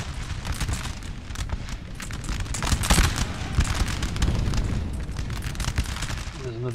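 Muskets fire in rapid, crackling volleys.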